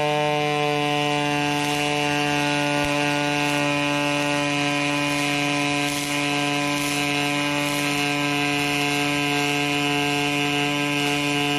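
A welding arc crackles and sizzles steadily.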